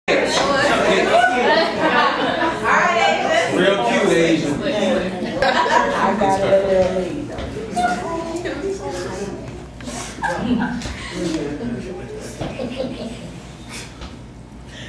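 A woman speaks expressively, as if performing aloud.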